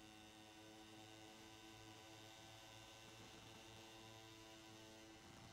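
Motorcycle engines whine steadily at high speed.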